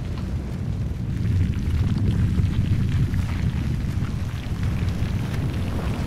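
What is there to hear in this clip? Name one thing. Dust and rubble crackle and clatter around the stone block.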